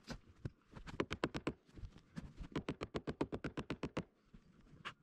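A wooden mallet knocks rapidly on a timber beam.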